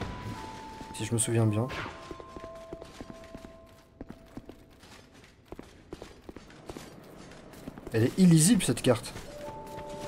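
A young man speaks loudly into a microphone.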